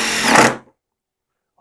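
A power drill whirs briefly.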